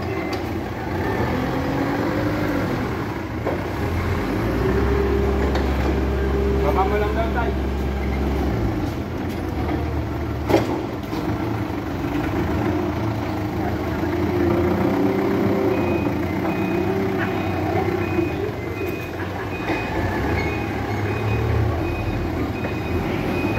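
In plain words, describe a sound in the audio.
A forklift engine rumbles nearby.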